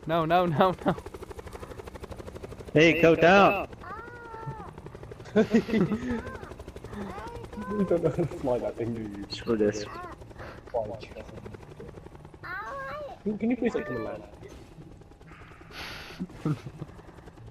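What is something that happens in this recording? A helicopter's rotor thumps steadily close by.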